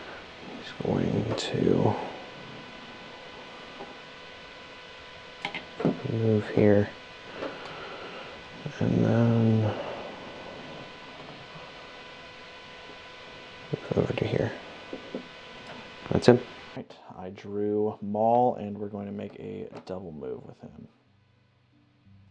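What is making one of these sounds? Small plastic pieces tap and clack on a tabletop.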